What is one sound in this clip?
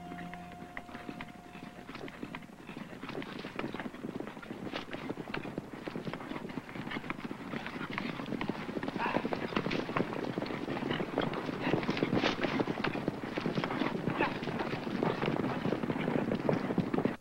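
Many horses gallop, their hooves drumming on the ground.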